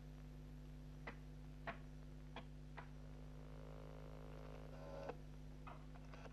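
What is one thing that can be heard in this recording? A rotary phone dial whirs and clicks as it turns back.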